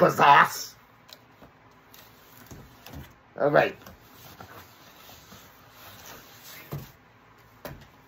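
Cardboard scrapes and rustles as a package is opened.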